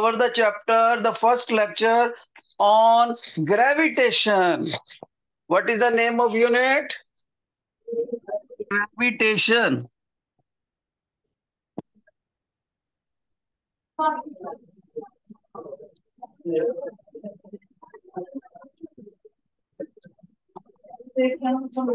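A middle-aged man speaks calmly and clearly, as if teaching, through an online call.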